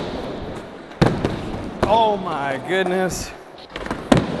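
A skateboard clatters on the floor after a missed trick.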